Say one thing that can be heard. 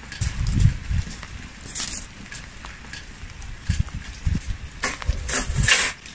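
Footsteps rustle through dry fallen leaves outdoors.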